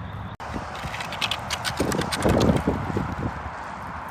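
A dog's paws crunch on gravel.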